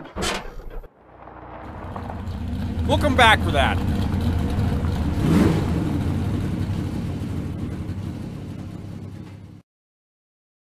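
Car engines rumble and drive off into the distance.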